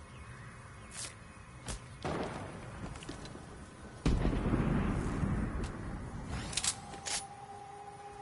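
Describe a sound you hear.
Short electronic menu clicks and blips sound now and then.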